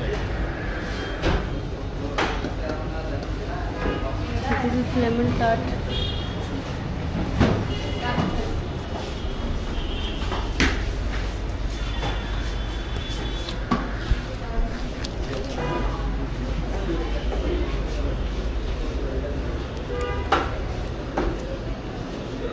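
A murmur of voices fills a busy indoor space.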